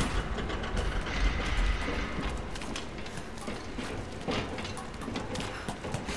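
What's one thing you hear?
Feet knock on wooden ladder rungs.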